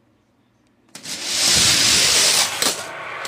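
Several toy cars roll and rattle down a plastic track.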